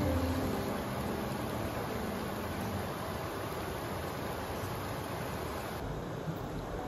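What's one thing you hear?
A shallow river ripples and burbles over stones.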